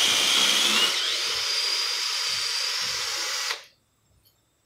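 A cordless drill whirs steadily, then stops.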